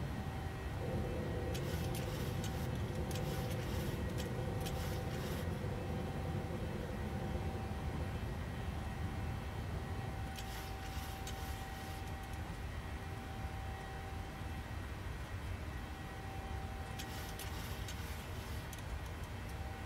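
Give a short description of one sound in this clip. Jet engines drone steadily in a cockpit.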